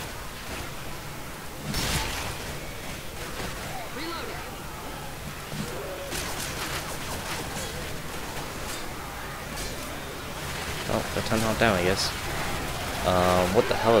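An axe strikes with heavy thuds.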